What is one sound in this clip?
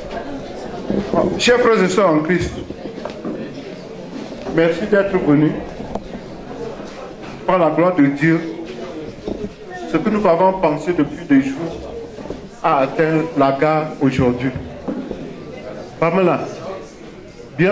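A man speaks with animation through a microphone and loudspeaker in an echoing hall.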